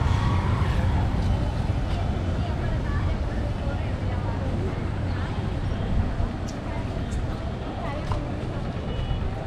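A motorbike engine hums faintly on a nearby street.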